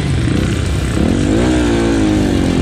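A dirt bike engine revs up.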